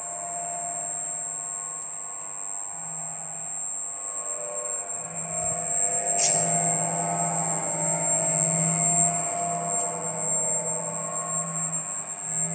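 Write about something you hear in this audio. A machine hums steadily with a high electrical whine.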